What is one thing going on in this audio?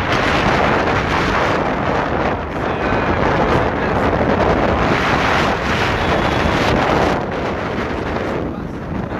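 A motorcycle engine runs while riding along a road.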